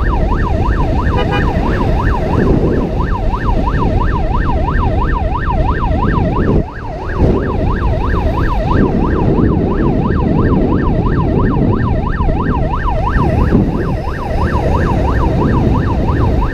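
Wind buffets loudly while riding a motorcycle.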